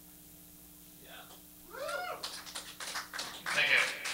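An electric guitar plays loud sliding, bending notes through an amplifier.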